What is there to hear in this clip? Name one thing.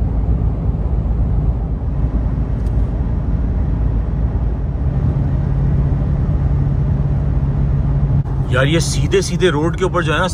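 A car engine hums and tyres rumble steadily on a highway.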